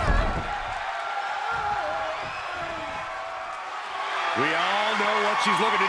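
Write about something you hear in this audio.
A crowd cheers in a large arena.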